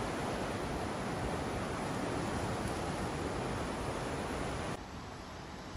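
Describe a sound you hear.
Shallow water ripples and laps gently.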